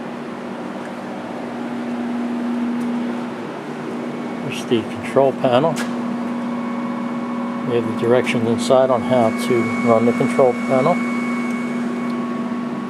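A machine hums steadily and low.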